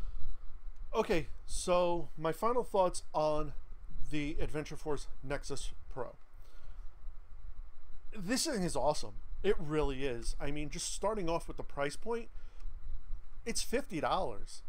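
A man talks up close to the microphone, with animation.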